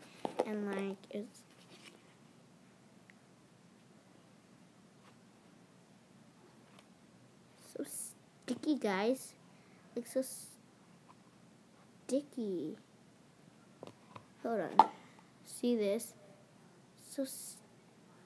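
A young girl talks close by in short bursts.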